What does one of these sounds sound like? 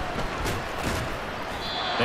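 Padded players thud together in a tackle.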